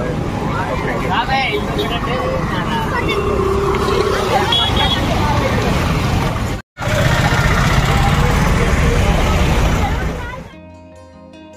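Motorcycle engines rumble past.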